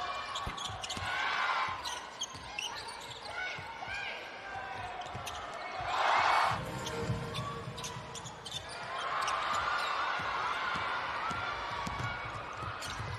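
Sneakers squeak sharply on a hard court, many times.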